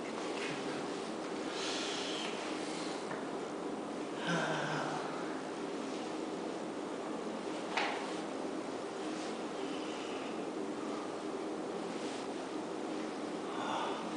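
An eraser rubs and squeaks across a whiteboard.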